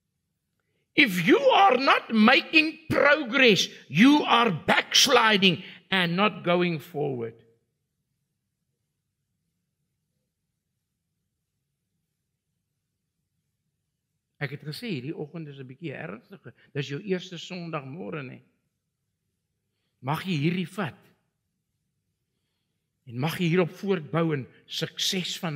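An elderly man preaches with animation through a microphone, in bursts with long pauses.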